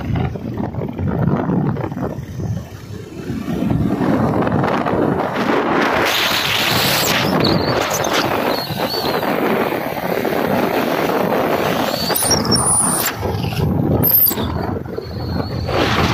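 Wind rushes loudly past a moving motorcycle outdoors.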